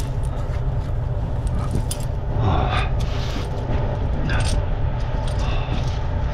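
A gloved hand scrapes and crunches through packed snow.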